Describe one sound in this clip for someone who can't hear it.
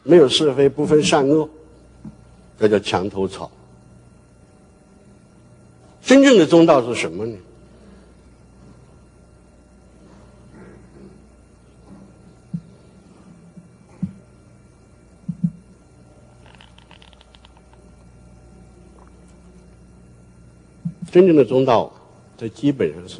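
An elderly man speaks calmly through a microphone, with long pauses.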